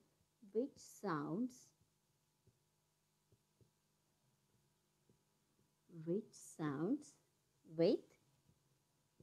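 A young woman speaks slowly and clearly, as if dictating, close by.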